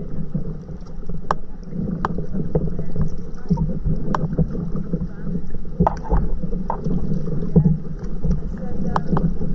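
Paddles dip and splash in calm water nearby.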